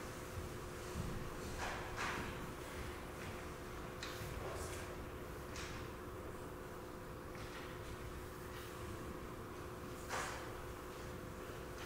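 Stringed instruments hold a soft, steady note.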